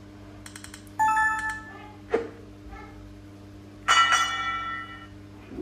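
Bright electronic chimes ring out in short bursts.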